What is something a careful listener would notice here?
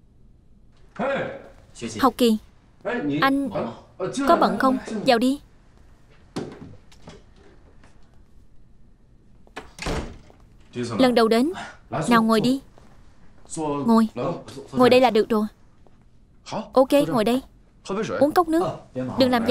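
Another young man answers calmly nearby.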